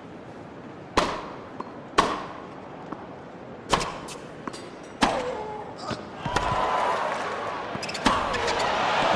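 A tennis ball is struck with sharp pops, back and forth.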